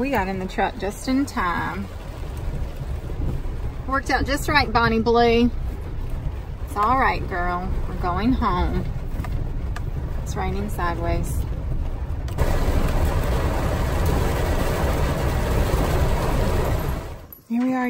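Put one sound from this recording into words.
A car engine rumbles steadily as the car drives along a rough track.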